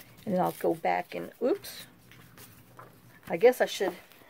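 Paper rustles as a sticker is peeled.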